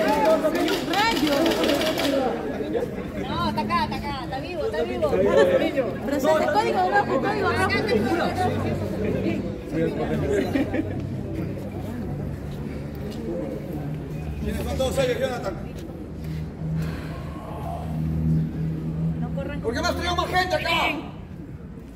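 Several men talk and call out excitedly nearby.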